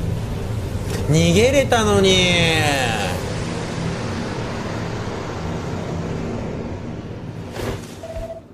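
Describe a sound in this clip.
A magical whooshing swells and then fades away.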